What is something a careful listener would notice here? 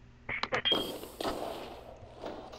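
An explosion bursts with a crackling boom.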